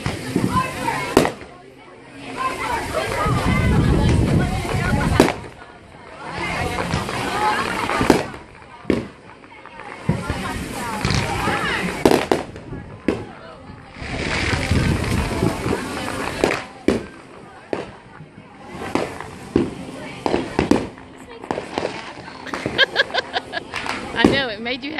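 Fireworks burst with sharp bangs, one after another.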